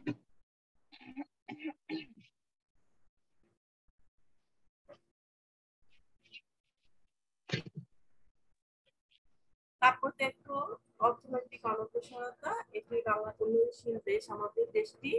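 A woman talks over an online call.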